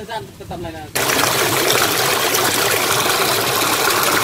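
Water gushes and splashes loudly through a mesh.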